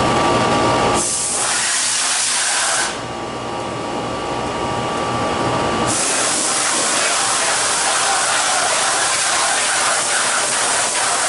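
Gas hisses loudly from a hose.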